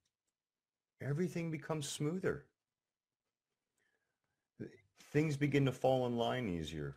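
A middle-aged man speaks calmly and close to the microphone, in short bursts with pauses.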